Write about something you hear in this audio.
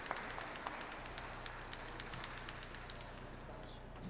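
Ice skate blades glide and scrape across the ice in a large echoing hall.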